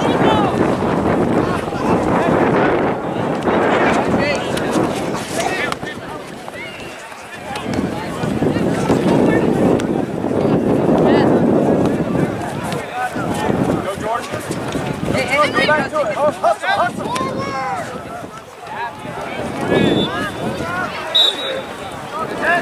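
Adults and children shout and call out across an open outdoor field.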